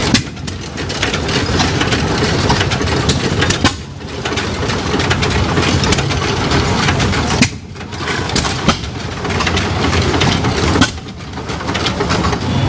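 Old stationary engines chug and pop steadily nearby.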